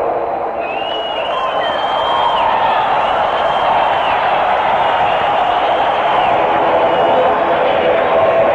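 A man sings in a high, drawn-out wail through a microphone, loud and live.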